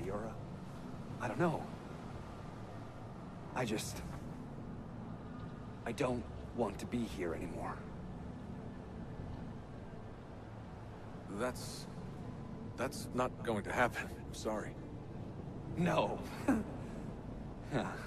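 A young man speaks quietly and sadly, close by.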